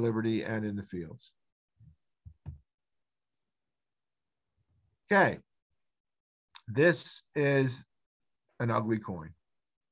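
An older man speaks calmly over an online call, pausing between phrases.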